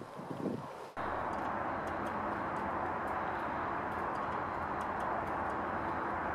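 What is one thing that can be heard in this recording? Shallow water trickles and flows steadily nearby.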